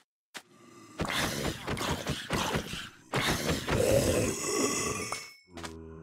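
A sword strikes a creature with dull thuds.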